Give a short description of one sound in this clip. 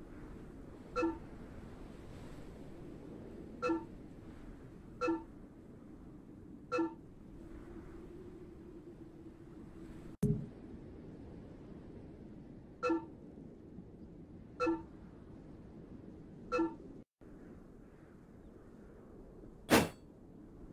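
Short pitched chimes sound as menu options are picked.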